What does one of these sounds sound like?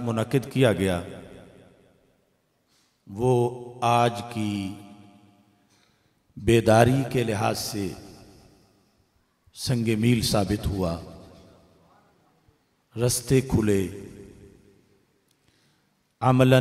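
A man speaks forcefully into a microphone in bursts, his voice echoing through loudspeakers in a large space.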